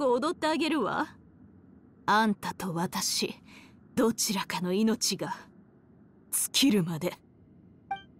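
A woman speaks with a haughty, mocking tone, laughing between words.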